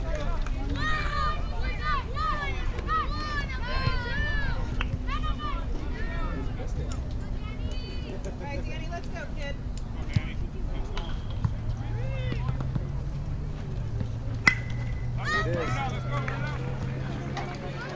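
Young girls cheer and chant loudly nearby.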